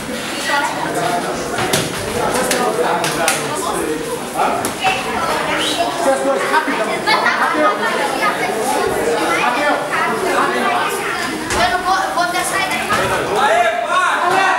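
A crowd of spectators chatters and calls out loudly in a large echoing hall.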